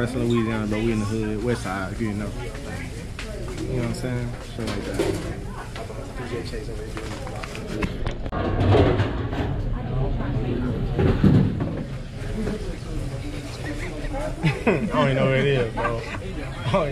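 Other men talk in the background of a busy room.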